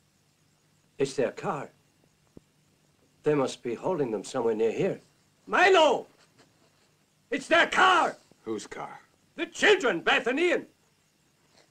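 A man answers in a gruff voice.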